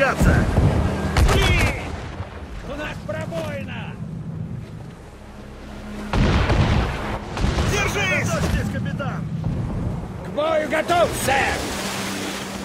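Sea waves rush and splash against a ship.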